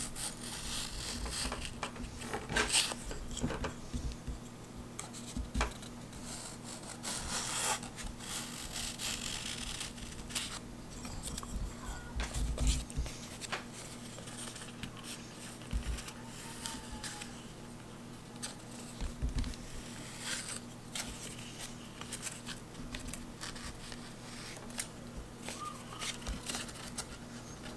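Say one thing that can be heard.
Paper rustles and crinkles as it is folded and creased.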